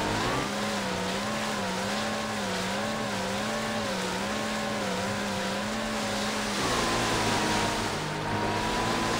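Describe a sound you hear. A jet ski engine drones with a gently wavering pitch, then shifts to a steadier tone.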